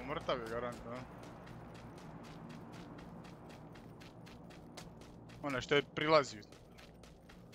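Footsteps thud steadily on dirt.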